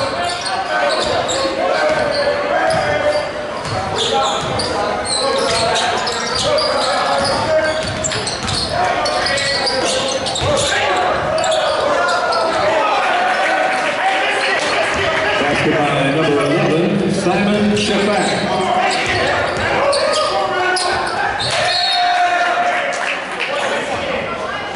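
A crowd of spectators chatters and cheers in an echoing gym.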